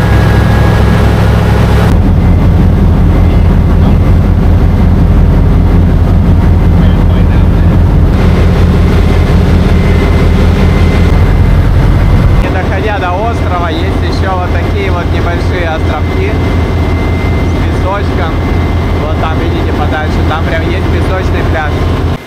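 A boat engine drones loudly and steadily.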